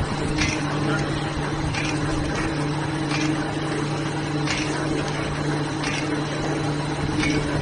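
A machine clicks rhythmically as it runs.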